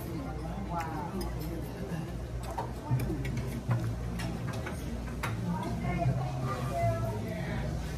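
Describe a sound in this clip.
A woman chews food close to a microphone.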